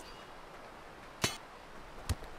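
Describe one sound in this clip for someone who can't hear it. Steel sword blades clash together.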